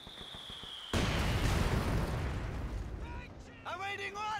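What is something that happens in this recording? A mortar shell explodes with a heavy rumbling blast.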